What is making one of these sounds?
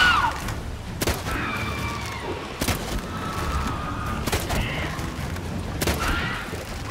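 A sword swishes and strikes.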